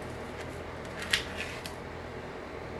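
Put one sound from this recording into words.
A plastic scraper scrapes and clicks across a metal plate.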